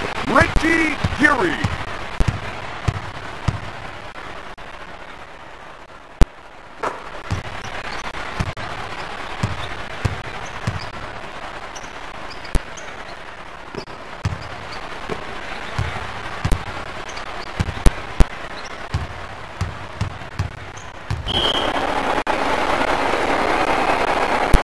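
An arena crowd roars.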